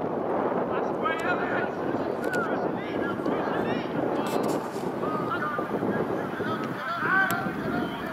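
Players shout across an open field.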